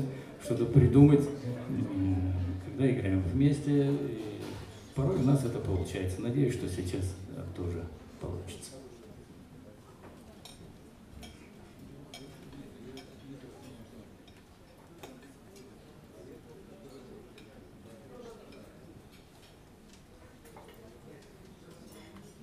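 Two electric guitars play a jazz tune together through amplifiers, loud at first and then softly.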